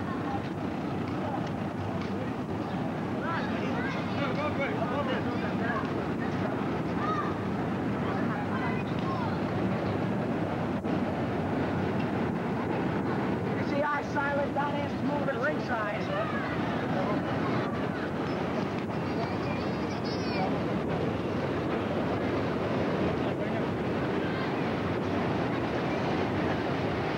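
Young men shout and cheer outdoors.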